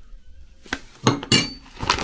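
A spoon scrapes and clinks against a cup.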